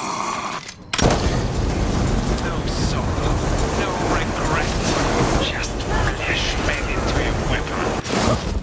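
A flamethrower roars in loud bursts.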